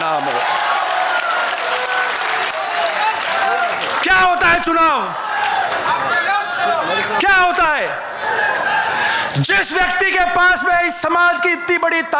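A man speaks forcefully into a microphone, heard through loudspeakers.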